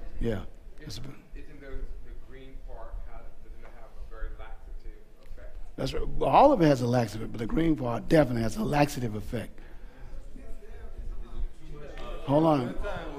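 A middle-aged man preaches into a microphone, now quietly, now loudly with emphasis.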